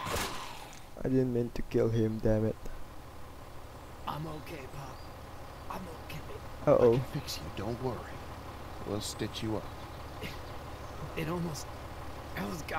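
An elderly man speaks in a low, worried voice.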